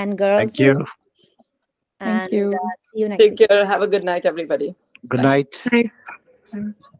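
A man talks calmly over an online call.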